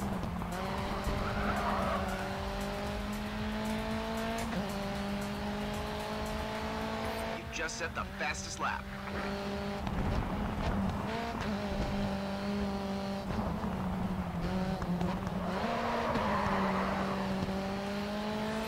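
A racing car engine revs high and shifts through gears.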